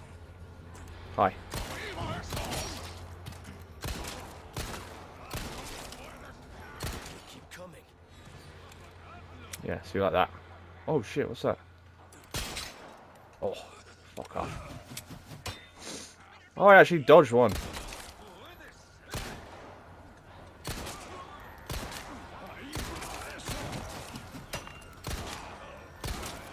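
A pistol fires sharp shots, one after another.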